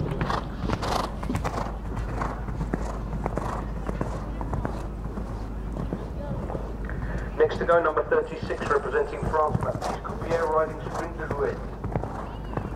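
A horse's hooves thud on sand at a canter.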